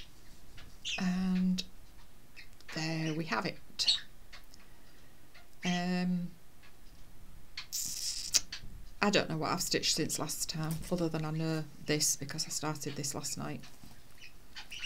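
A middle-aged woman talks calmly, close to a microphone.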